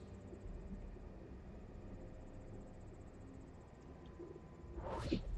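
A man speaks quietly into a microphone.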